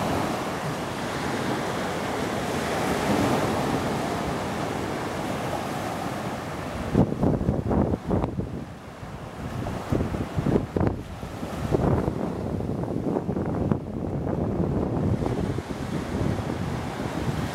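Small waves wash onto the shore nearby.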